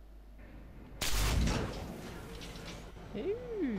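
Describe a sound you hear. A burst of sparks crackles and whooshes loudly.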